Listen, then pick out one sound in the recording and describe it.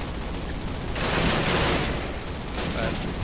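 Gunfire bursts loudly.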